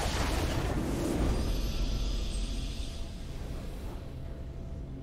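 A triumphant fanfare rings out, then fades.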